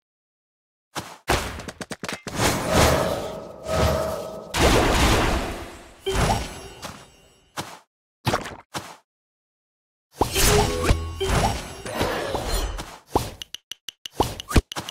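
Fantasy game battle effects burst and clatter in quick succession.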